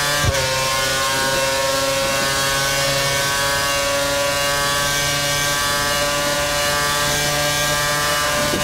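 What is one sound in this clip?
A racing car engine screams at high revs, its pitch slowly rising.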